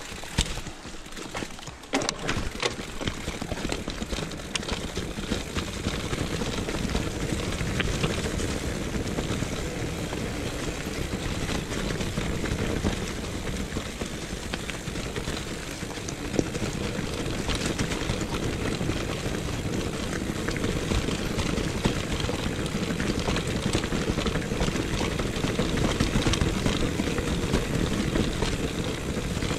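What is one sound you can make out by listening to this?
Bicycle tyres roll and crunch over a leafy dirt trail.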